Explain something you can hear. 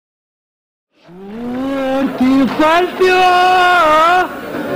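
A man sings a long, wavering melody.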